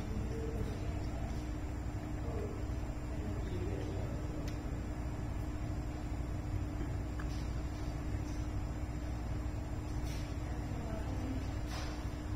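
A cat chews and licks food from a hand.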